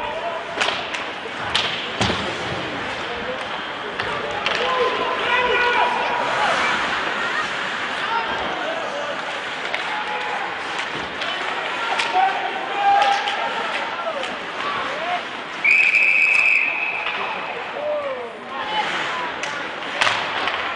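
A crowd of spectators chatters and calls out in an echoing rink.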